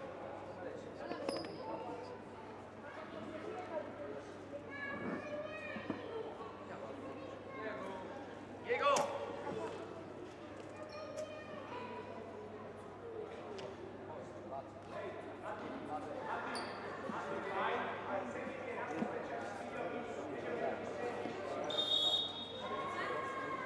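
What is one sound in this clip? People talk and call out in a large echoing hall.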